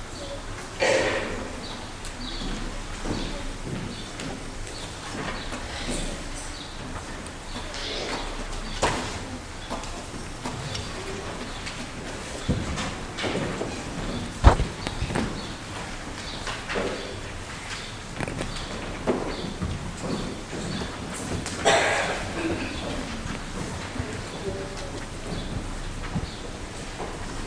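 A man speaks quietly and calmly in a large echoing hall.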